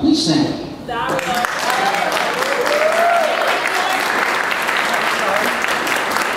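A crowd cheers and applauds.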